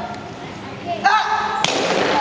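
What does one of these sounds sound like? Wooden boards crack and break with a loud snap.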